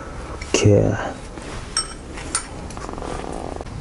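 Metal tools clink and clatter onto concrete.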